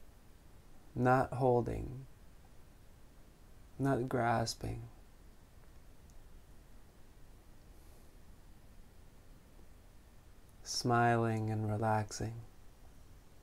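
A man speaks calmly and slowly into a nearby microphone, in short phrases with long pauses.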